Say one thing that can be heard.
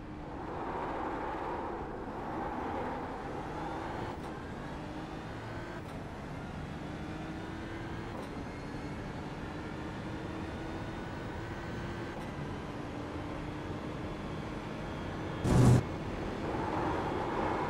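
A racing car engine roars and climbs steadily through the gears.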